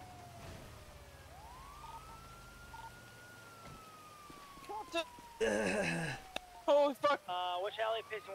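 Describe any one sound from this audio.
A police siren wails and slowly falls in pitch.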